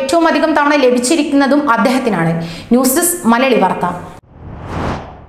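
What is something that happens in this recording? A young woman reads out the news calmly into a close microphone.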